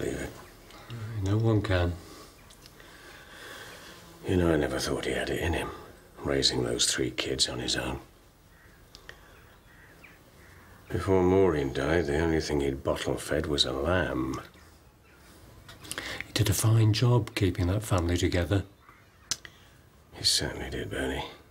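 A second elderly man answers with a lively, surprised voice.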